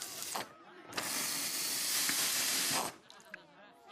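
Lighter fluid sprays out with a steady hiss.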